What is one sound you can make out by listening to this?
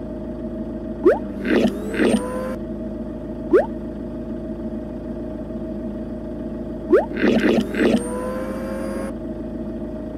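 A cartoon plunger arm stretches out and snaps back with springy, sliding sounds.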